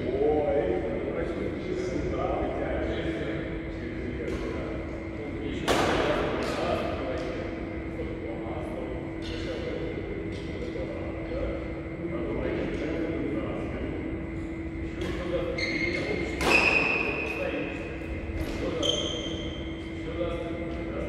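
Young men talk calmly nearby in a large echoing hall.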